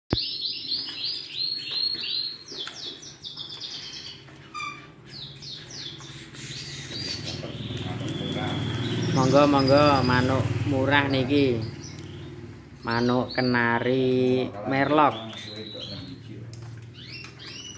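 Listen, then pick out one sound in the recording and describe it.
Small caged birds chirp and trill rapidly.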